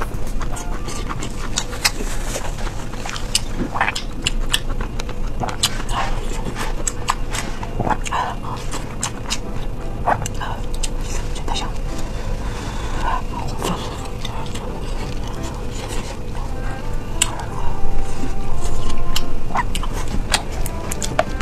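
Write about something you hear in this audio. A young woman chews and slurps food wetly close to a microphone.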